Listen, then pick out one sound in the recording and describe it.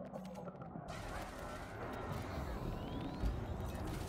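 Laser weapons fire in bursts.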